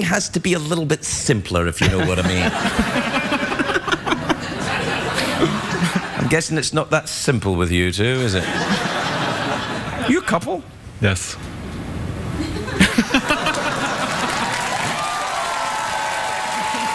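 A studio audience laughs and cheers.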